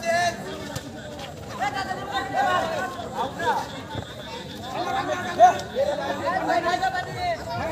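A crowd of young men shouts and calls out outdoors.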